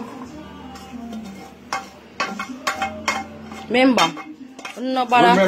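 Food plops into a metal pot.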